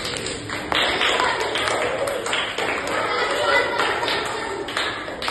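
Young boys chatter nearby.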